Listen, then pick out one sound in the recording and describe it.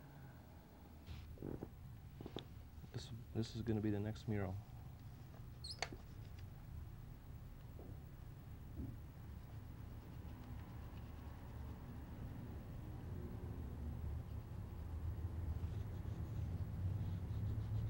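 Small objects tap softly onto a wooden board.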